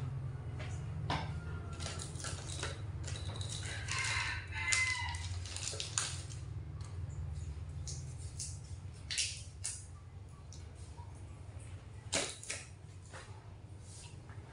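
Dishes and utensils clink.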